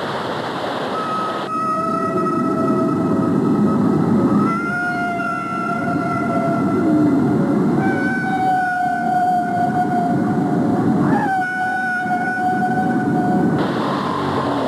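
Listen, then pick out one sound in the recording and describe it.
A whale sings long, wavering moans and whistles underwater.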